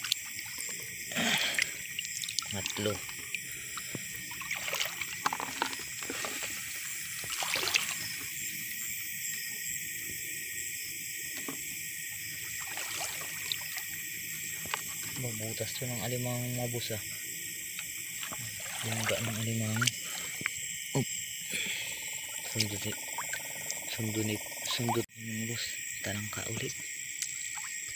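Water splashes as a hand moves through it.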